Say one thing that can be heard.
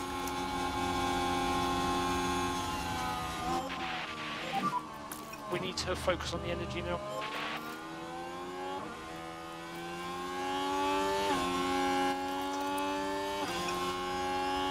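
A racing car engine whines at high revs, rising and dropping in pitch with gear changes.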